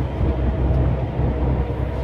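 A windscreen wiper sweeps once across the glass.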